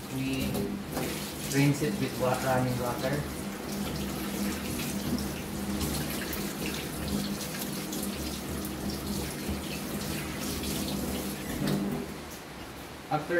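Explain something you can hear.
Water runs from a tap and splashes into a metal sink.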